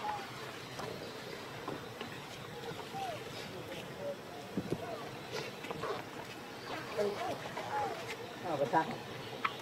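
A baby macaque squeals and whimpers.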